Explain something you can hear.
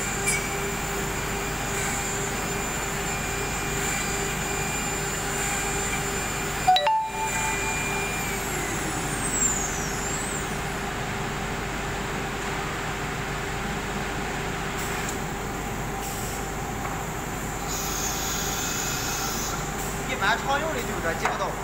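A machine hums steadily with a high whine.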